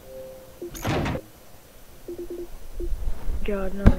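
Short electronic menu blips sound one after another.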